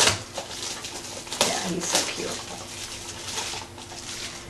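Plastic packaging crinkles as it is opened.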